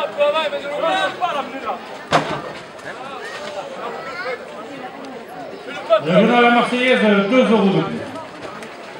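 Men shout and call out to a bull outdoors.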